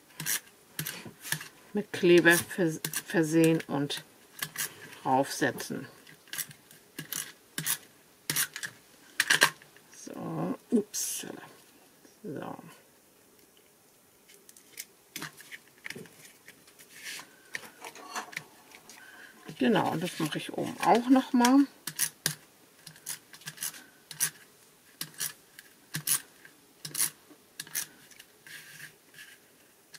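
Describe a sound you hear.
Stiff paper and plastic crinkle and rustle as they are handled.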